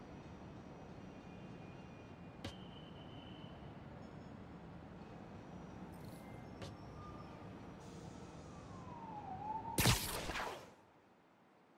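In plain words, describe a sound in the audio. Distant city traffic hums steadily.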